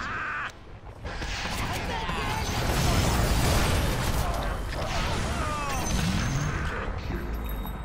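Game spells crackle and whoosh in a busy battle.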